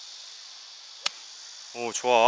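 A golf club swishes and strikes a ball.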